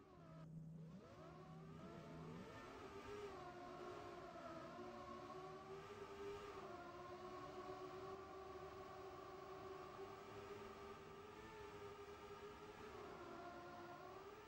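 Racing car engines whine and drone steadily as several cars race together.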